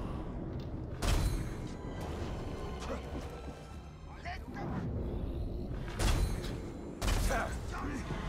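A bow twangs as arrows are shot, each with a sharp thud.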